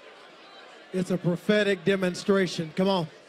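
A man speaks loudly and with passion through a microphone in a large hall.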